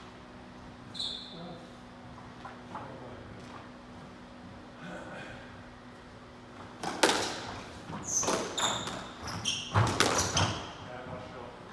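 Shoes squeak sharply on the wooden floor.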